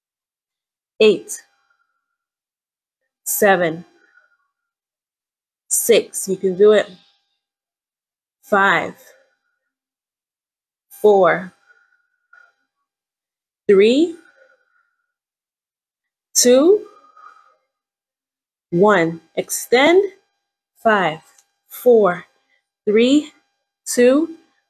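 A young woman counts aloud in short bursts, close by.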